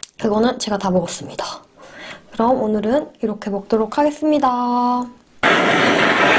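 A young woman speaks brightly, close to a microphone.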